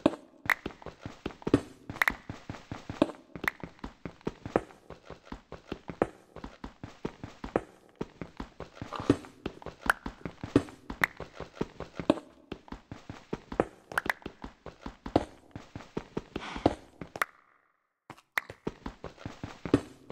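A pickaxe chips at stone with quick, repeated knocks.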